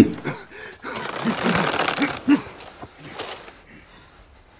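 Men shout and grunt as they fight.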